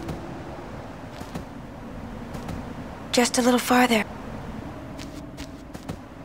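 Footsteps run on grass.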